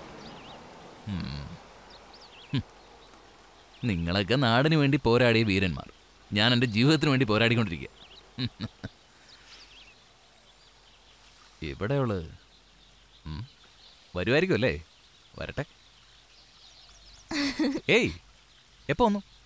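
A man speaks calmly and with feeling, close by.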